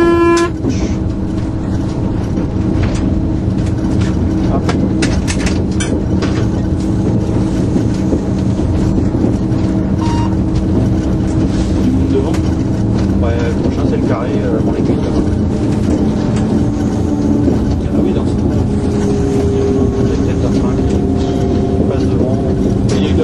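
A train's wheels click over rail joints.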